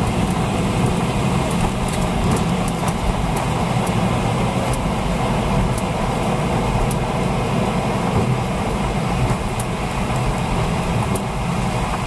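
Aircraft wheels rumble over the runway.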